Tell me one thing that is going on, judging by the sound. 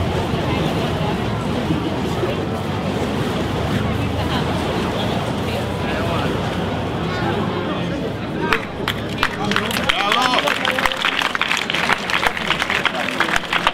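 Flaming torches whoosh as a performer swings them.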